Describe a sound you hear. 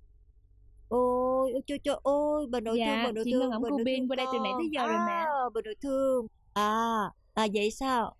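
An older woman speaks with animation.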